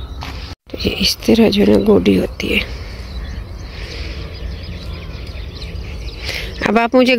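A small hand tool scrapes through dry soil.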